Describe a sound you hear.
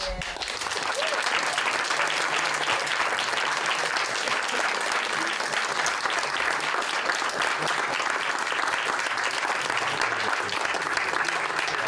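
A crowd applauds loudly in steady clapping.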